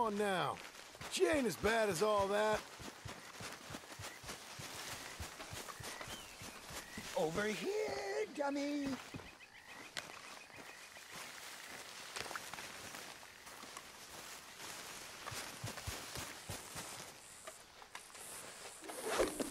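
Footsteps crunch and rustle through leaves and undergrowth.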